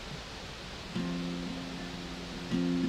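An acoustic guitar is strummed.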